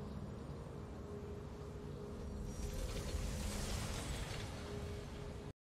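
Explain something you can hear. A triumphant game fanfare plays with a steady held note.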